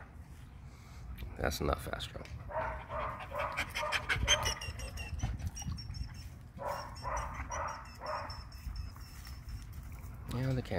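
Dogs pant heavily close by.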